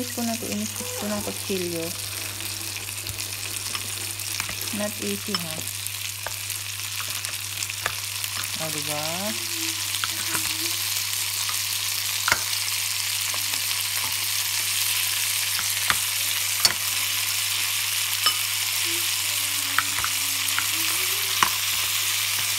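Mussel shells clack against a pan as they are dropped in.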